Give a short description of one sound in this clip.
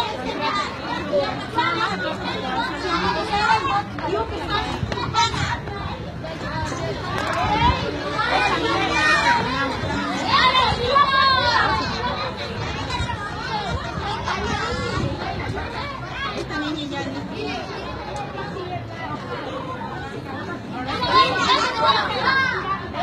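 A group of children chatter and call out nearby, outdoors.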